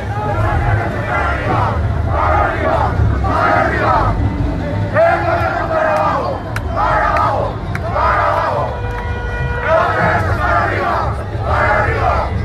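A large crowd of young men and women chants loudly in rhythmic bursts outdoors.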